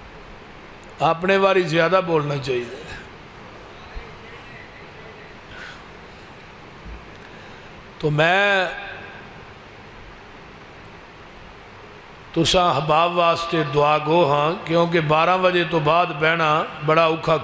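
A man chants in a melodic voice through a microphone and loudspeakers, in phrases separated by pauses.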